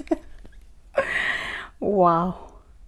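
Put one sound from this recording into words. A young woman laughs.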